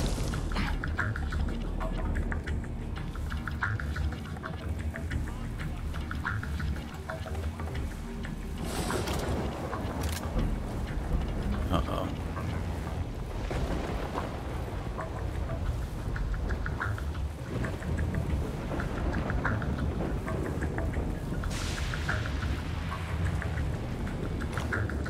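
Footsteps patter quickly on a wet hard floor.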